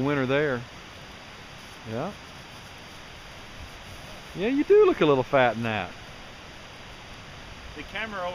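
An older man speaks with animation outdoors.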